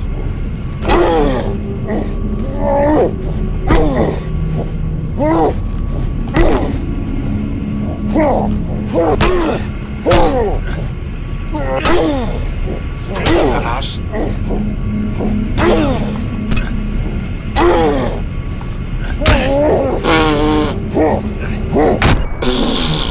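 Heavy blows thud again and again.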